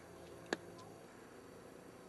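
Footsteps scuff on a paved road.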